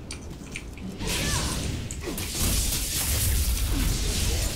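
Game combat sounds roar and crackle with magical blasts.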